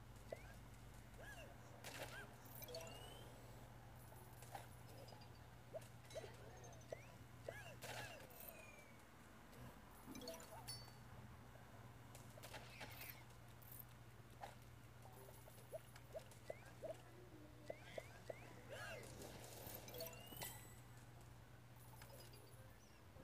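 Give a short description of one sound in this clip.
Cartoonish game sound effects zap, pop and chirp in quick bursts.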